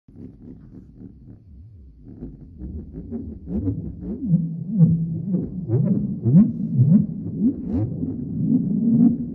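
A synthesizer plays a pulsing electronic bass line with pitch sweeps that grow louder.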